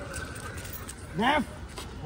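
A dog yelps sharply nearby.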